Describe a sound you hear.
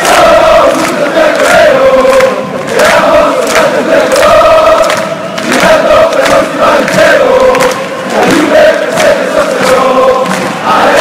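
A large crowd chants loudly in unison in a big echoing arena.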